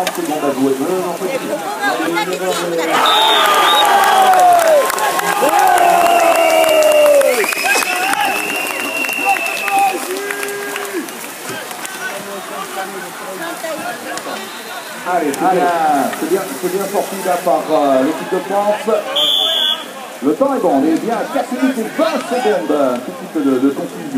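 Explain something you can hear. Young men shout to one another across open water.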